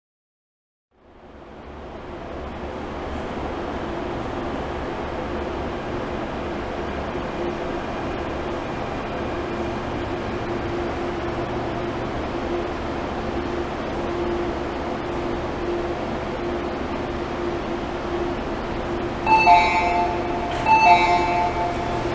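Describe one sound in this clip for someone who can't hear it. A train rumbles steadily into an echoing station.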